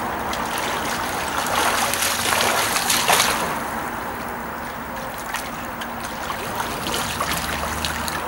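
A swimmer splashes through water in a pool.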